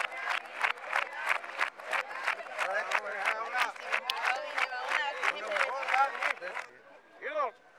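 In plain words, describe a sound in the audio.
A crowd claps rhythmically and quickly.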